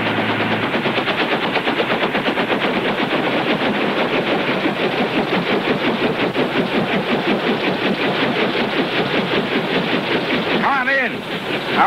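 A helicopter engine roars with a fast, steady chopping of its rotor.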